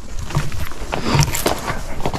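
Leafy branches brush and rustle against a rider.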